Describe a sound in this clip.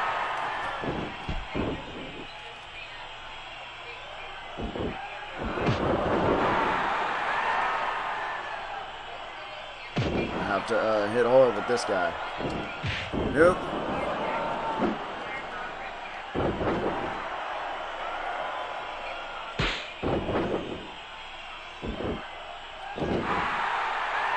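Heavy thuds of bodies slam onto a ring mat.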